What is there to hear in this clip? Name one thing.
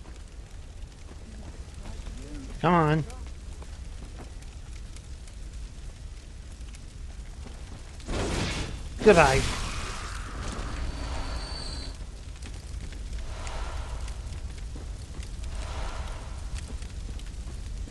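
Fires crackle nearby.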